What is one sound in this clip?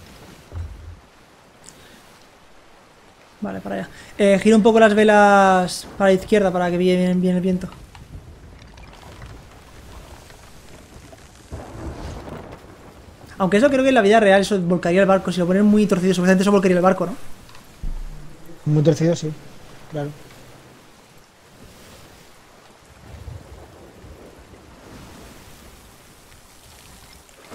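Waves wash and splash against a wooden ship's hull.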